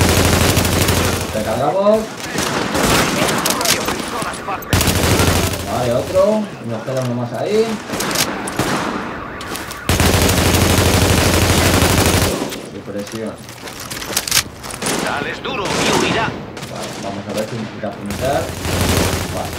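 Distant gunfire crackles on and off.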